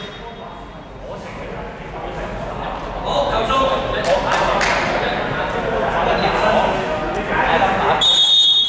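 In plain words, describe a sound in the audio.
Young men talk and call out across a large echoing gym.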